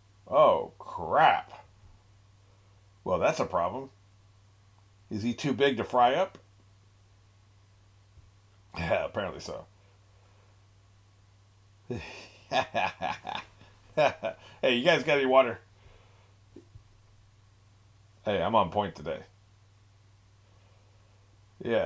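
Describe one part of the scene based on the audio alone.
An older man talks in short bursts with animation, close to a microphone.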